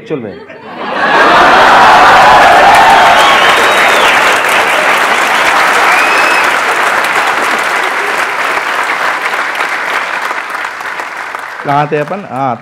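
A crowd laughs and applauds loudly.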